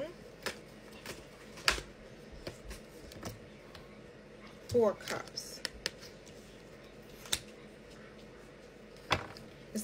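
Playing cards shuffle and flick softly.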